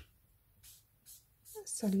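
A marker squeaks as it draws a line on paper.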